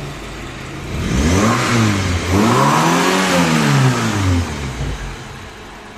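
A four-cylinder petrol car engine revs up and drops back twice.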